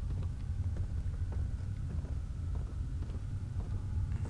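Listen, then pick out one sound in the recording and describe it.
Footsteps thud slowly on creaking wooden steps.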